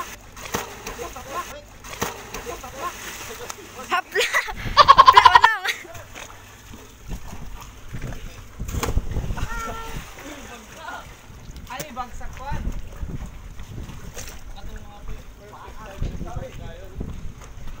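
Swimmers splash in the sea.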